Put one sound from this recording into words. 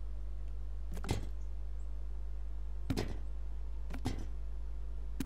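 A wire basket rattles and scrapes.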